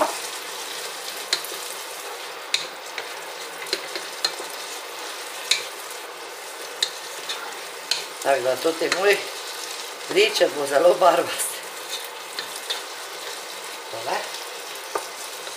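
A wooden spoon scrapes and stirs food in a pot.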